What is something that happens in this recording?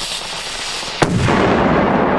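A firecracker explodes with a loud bang.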